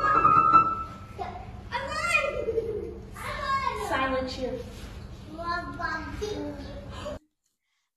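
Young children sing and chant together nearby in a room.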